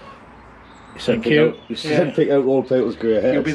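A man speaks close to the microphone with animation.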